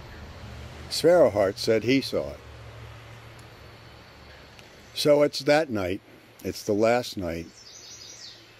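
An elderly man speaks calmly and close to the microphone, in short phrases with pauses.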